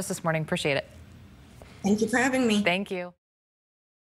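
A young woman speaks with animation over a broadcast microphone.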